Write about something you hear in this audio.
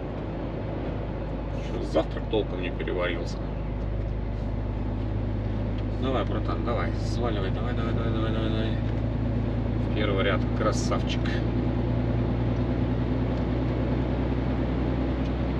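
A vehicle's engine hums steadily from inside the cab.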